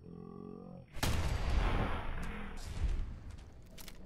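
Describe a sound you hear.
A gunshot blasts with a heavy boom and echoes.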